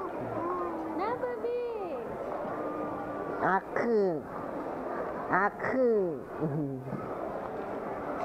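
A woman speaks cheerfully and close by to a small child.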